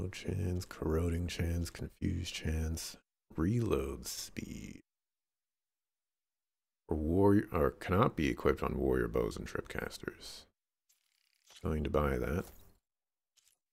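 A man talks calmly and closely into a microphone.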